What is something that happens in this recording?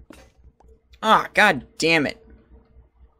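A young man exclaims loudly and playfully, close to a microphone.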